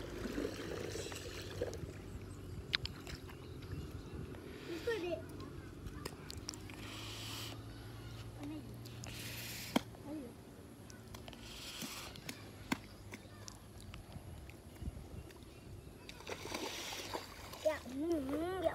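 Feet squelch in wet mud.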